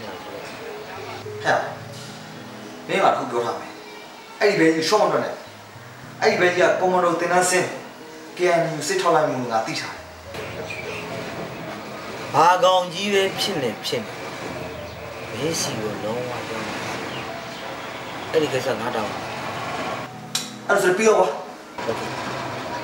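A man talks on a phone close by, calmly.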